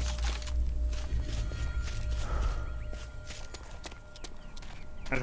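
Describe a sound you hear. Footsteps run quickly over rough ground.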